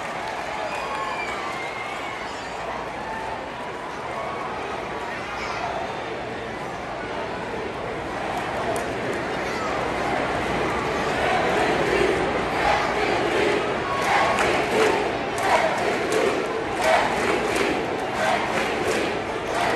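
A large crowd murmurs and chatters in a big open stadium.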